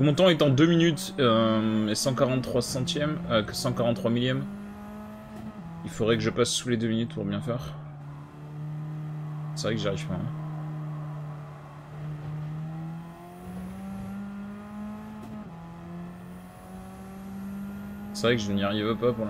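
A racing car engine hums steadily and rises in pitch as it speeds up.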